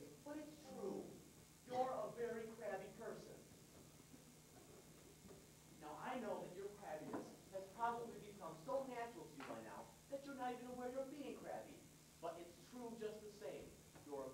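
Young children speak their lines clearly, heard from a distance in a hall.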